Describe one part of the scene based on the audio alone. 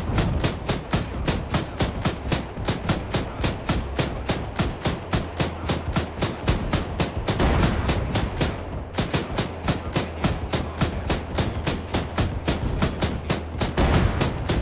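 A heavy cannon fires rapid, steady bursts of shots.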